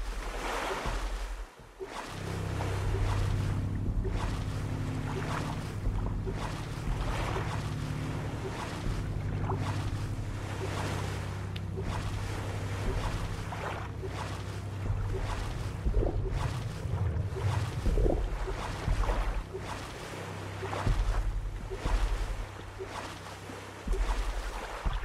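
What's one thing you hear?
Paddles splash rhythmically through the water.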